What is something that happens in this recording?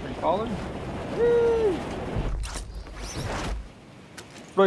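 Wind rushes loudly past during a fast glide.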